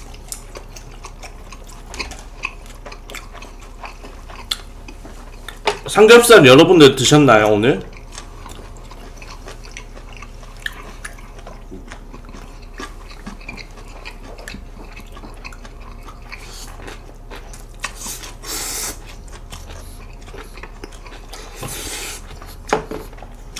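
Chopsticks click against dishes.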